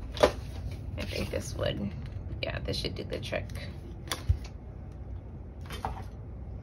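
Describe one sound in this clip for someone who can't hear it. Paper rustles and crinkles close by.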